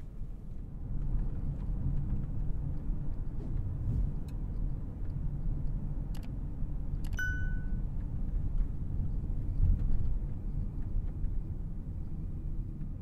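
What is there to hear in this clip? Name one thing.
A twin-turbo W12 luxury sedan accelerates, its rumble growing from inside the cabin.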